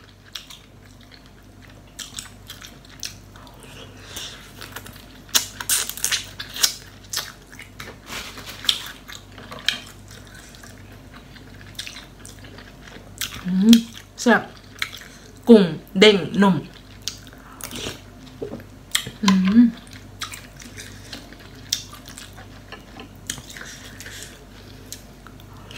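A young woman chews and slurps food loudly close to a microphone.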